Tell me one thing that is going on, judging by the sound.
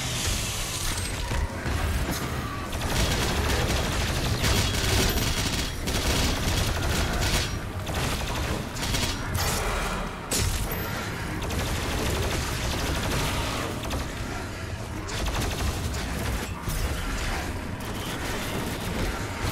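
Heavy gunfire blasts and roars in rapid bursts.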